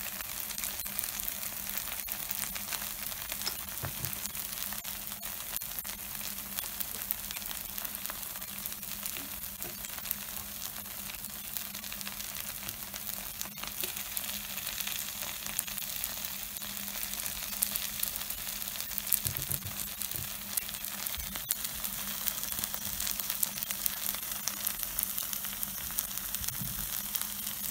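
Batter sizzles steadily on a hot griddle.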